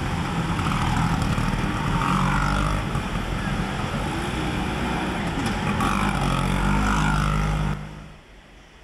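Scooter engines rev loudly as riders drive past close by in an echoing hall.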